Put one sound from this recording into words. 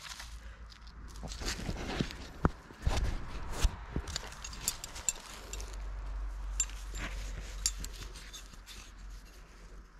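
Dry leaves rustle and crunch nearby.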